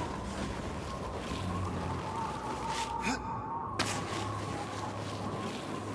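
Boots slide and scrape over ice with a rushing hiss.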